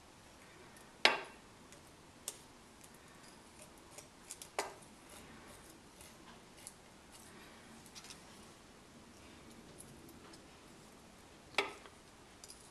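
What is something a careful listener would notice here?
A small metal tool clicks and taps against a metal part.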